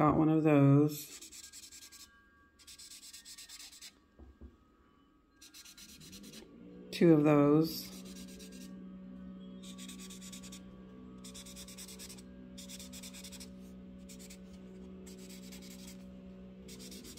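A marker scrubs on paper in short bursts.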